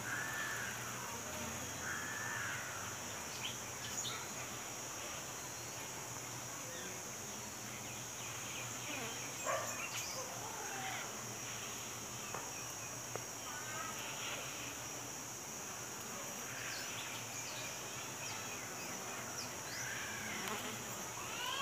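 A dense swarm of bees hums and buzzes steadily close by.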